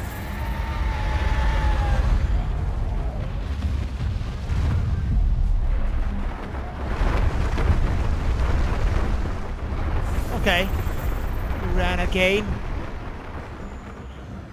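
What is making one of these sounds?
A large beast rumbles and thrashes close by.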